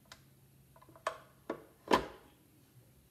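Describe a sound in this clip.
Metal parts of a mixer clink and knock.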